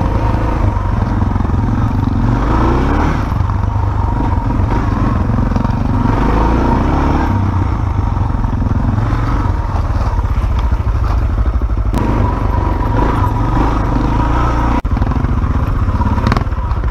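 Tyres crunch over gravel and dirt.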